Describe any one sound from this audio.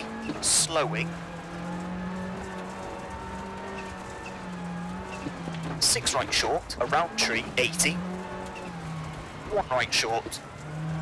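A rally car engine drones and revs steadily.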